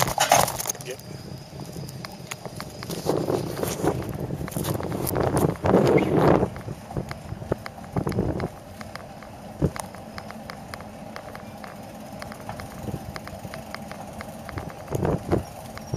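A bicycle rattles and clicks over bumps in the road.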